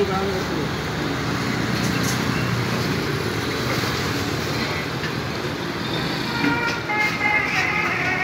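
Metal pots clink and clatter as they are handled.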